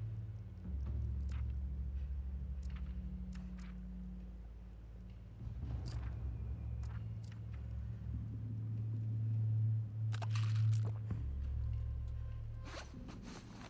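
Menu selections click softly.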